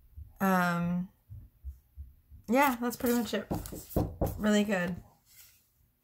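A woman speaks with animation close to a microphone.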